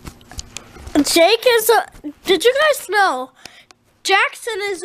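A young boy talks loudly and excitedly, very close to a microphone.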